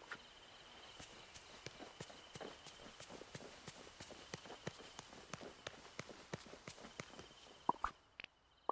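Footsteps patter quickly on grass and stone paving.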